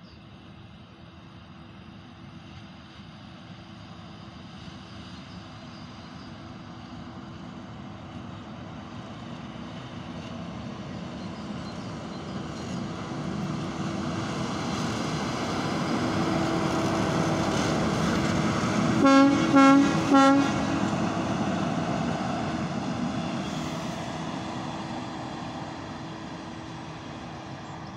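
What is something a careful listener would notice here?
A diesel locomotive engine rumbles, growing louder as it approaches and then fading.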